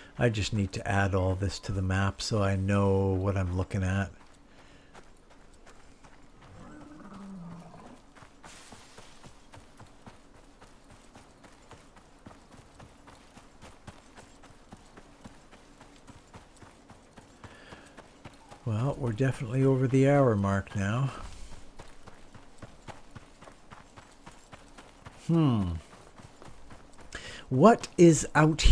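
Footsteps tread steadily over grass and gravel.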